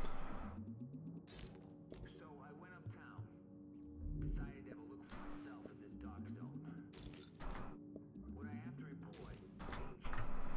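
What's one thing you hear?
Menu selections click sharply several times.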